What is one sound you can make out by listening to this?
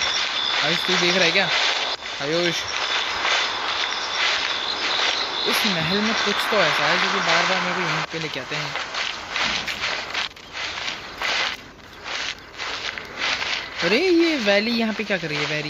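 Quick footsteps patter across stone.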